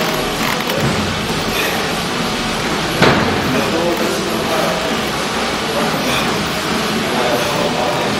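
A man grunts and breathes hard with effort.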